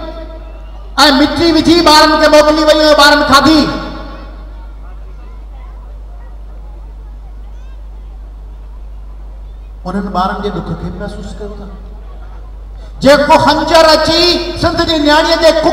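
A man sings loudly into a microphone through loudspeakers, in bursts.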